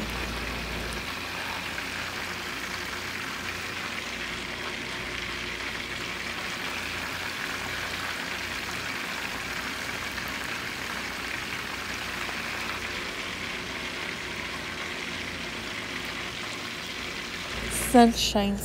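Hot oil sizzles and bubbles steadily.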